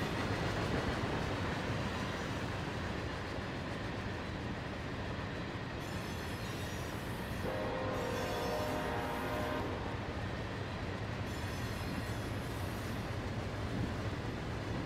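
A long freight train rumbles and clatters steadily along the tracks.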